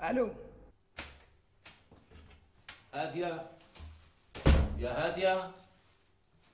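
A door opens and closes with a click.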